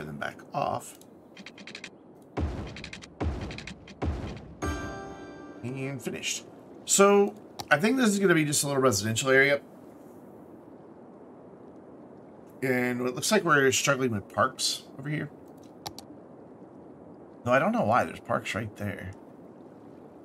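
A man talks with animation into a close microphone, in bursts with pauses.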